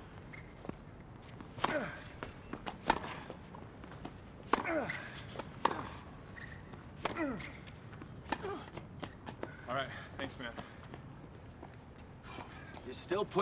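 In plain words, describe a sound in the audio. A tennis ball is struck with sharp pops.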